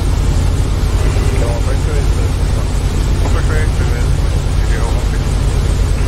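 A man speaks calmly into a headset microphone.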